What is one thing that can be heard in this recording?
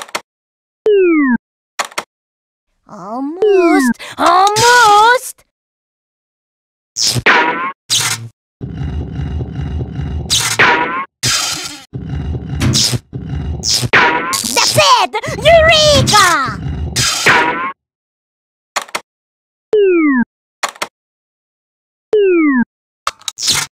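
A short descending blip sounds as a game piece drops into place.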